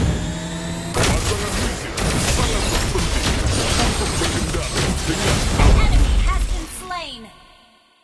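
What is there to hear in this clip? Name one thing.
Magic blasts and impacts crash loudly in a fight.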